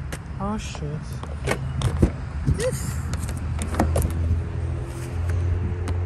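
A car door handle clicks and the door swings open.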